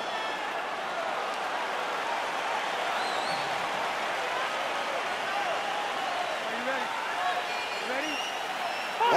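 A large crowd cheers and whistles in a big echoing arena.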